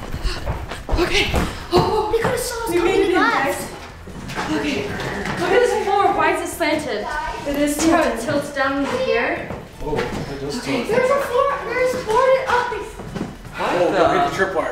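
A young boy talks excitedly indoors.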